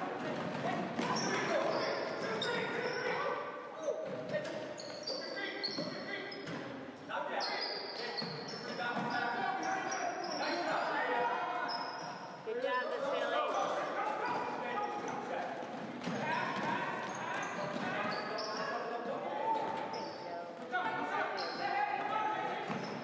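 Boys shout and call out across the court.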